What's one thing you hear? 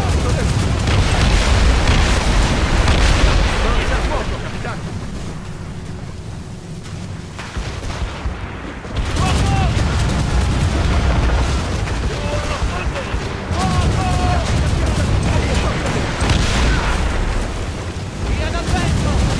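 Cannons boom and crackle in heavy gunfire.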